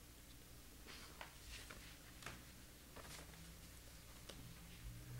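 A young woman speaks quietly through a microphone.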